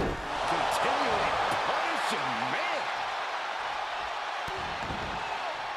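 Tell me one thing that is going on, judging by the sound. A large crowd roars and cheers in a big arena.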